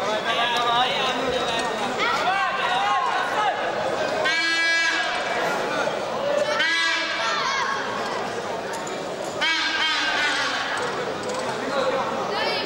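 A crowd shouts and cheers loudly in a large echoing hall.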